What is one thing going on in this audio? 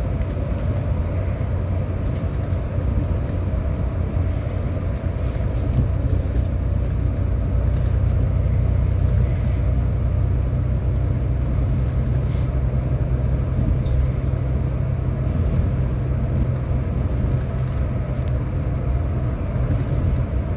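Tyres roll on the road with a steady rushing noise.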